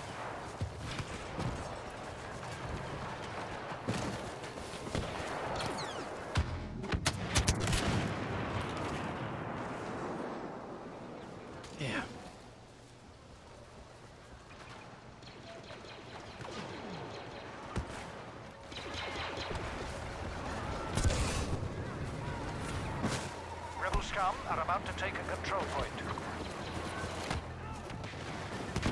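Blaster shots fire in sharp bursts.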